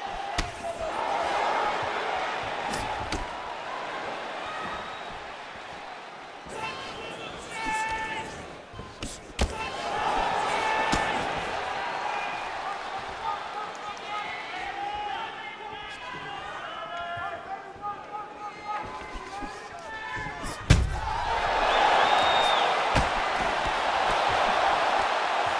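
A crowd roars and cheers in a large arena.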